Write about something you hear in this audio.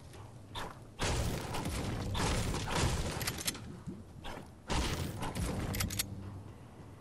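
Wooden panels snap into place with loud crashing bursts.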